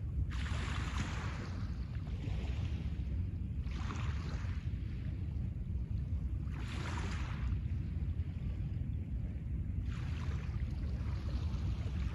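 Small waves wash gently onto a pebble shore and draw back over the stones.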